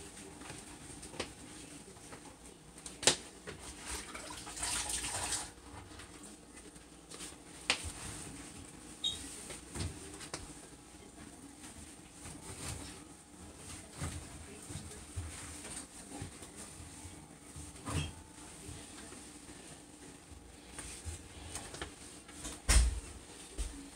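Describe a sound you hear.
Clothing rustles right up close.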